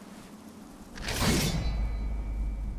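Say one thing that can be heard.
A sword blade scrapes and rings with a metallic sound.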